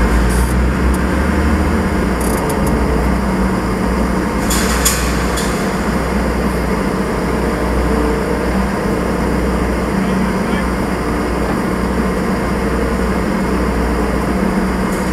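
Machinery clanks and rattles.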